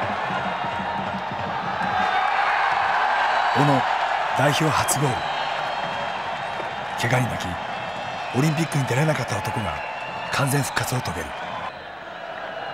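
A crowd cheers and roars in a large open stadium.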